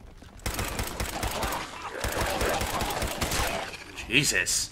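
An automatic rifle fires rapid bursts in a video game.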